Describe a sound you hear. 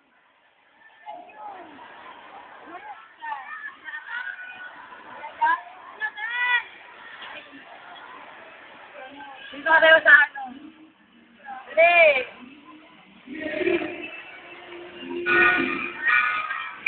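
A crowd of young people chatters and shouts nearby outdoors.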